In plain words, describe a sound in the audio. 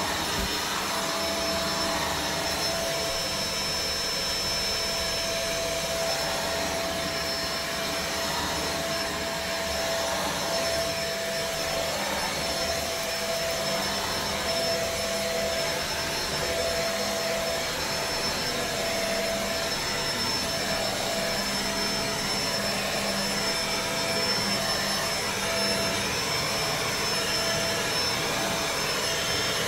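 A carpet cleaning machine whirs steadily and loudly.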